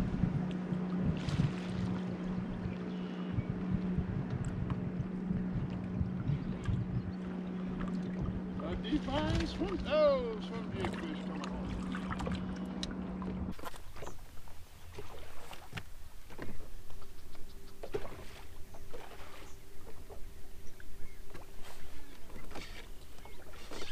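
Water laps against a boat hull.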